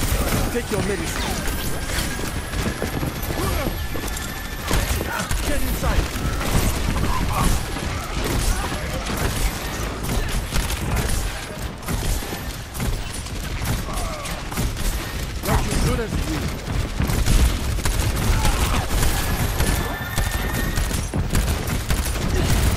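Rapid gunfire blasts in quick bursts.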